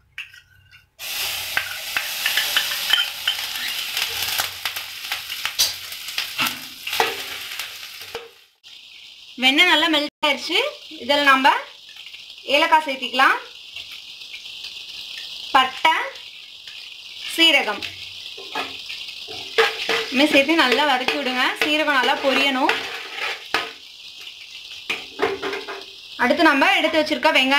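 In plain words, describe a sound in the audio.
Butter sizzles and crackles loudly in a hot pan.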